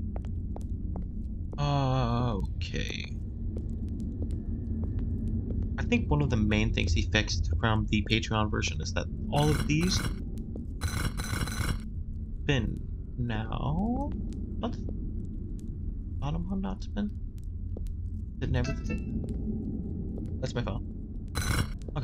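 A torch flame crackles and flickers steadily.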